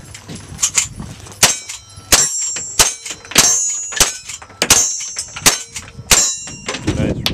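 Metal clacks as a rifle lever is worked.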